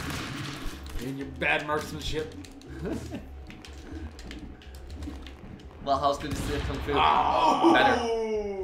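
Young men talk and shout with animation, heard through a room microphone.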